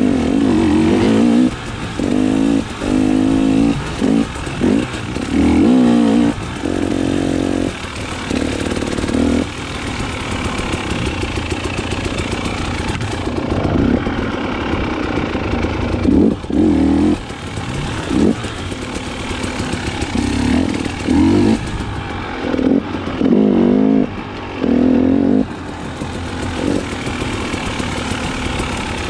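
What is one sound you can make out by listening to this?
Dirt bike tyres crunch over a dirt trail.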